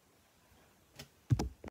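An electric guitar is strummed briefly.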